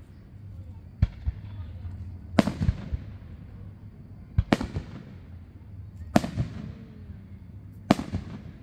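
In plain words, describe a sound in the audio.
Fireworks burst with loud booming bangs that echo away.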